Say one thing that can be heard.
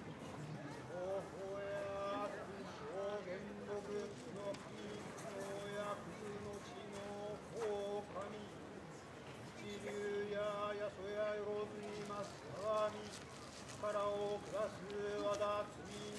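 Bamboo flutes play a slow, wavering melody.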